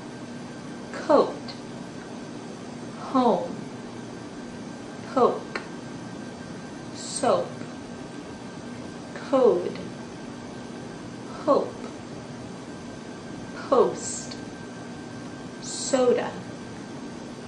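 A young woman close by makes short, falling vocal sounds again and again at a steady pace.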